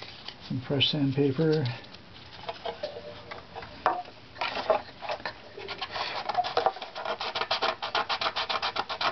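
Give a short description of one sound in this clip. A scraper rasps against wood in quick, rhythmic strokes.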